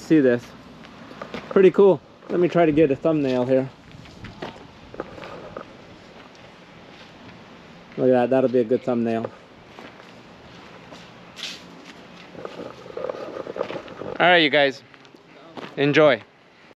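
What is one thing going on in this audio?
A middle-aged man talks calmly and close by, outdoors.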